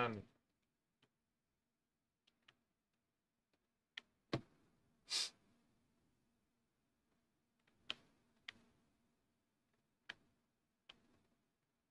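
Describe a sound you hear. Short menu clicks and chimes sound now and then.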